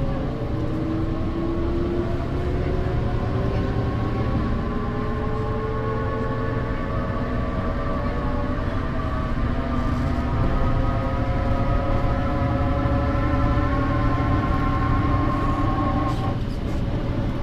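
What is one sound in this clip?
A bus engine hums and whines steadily, rising in pitch as the bus speeds up.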